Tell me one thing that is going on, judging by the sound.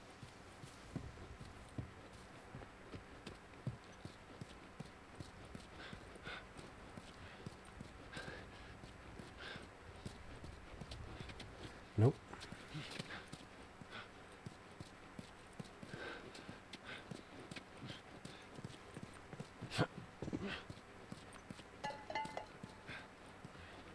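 Footsteps scuff and tap on a hard floor at a walking pace.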